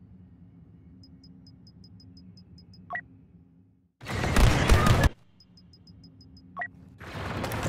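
Soft menu ticks click in quick succession.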